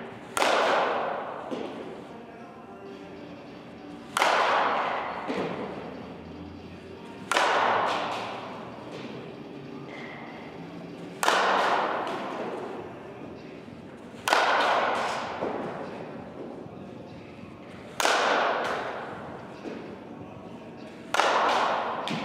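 A metal softball bat strikes a softball with a sharp ping.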